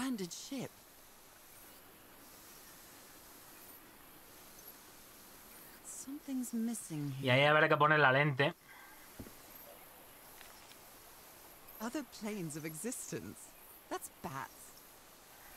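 A man talks into a close microphone, animated, with long pauses.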